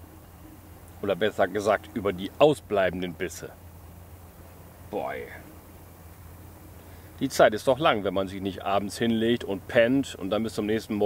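A middle-aged man talks calmly close by, outdoors.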